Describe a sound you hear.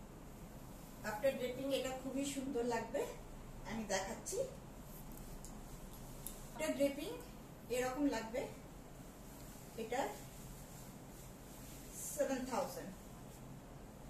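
A woman speaks calmly nearby in short phrases.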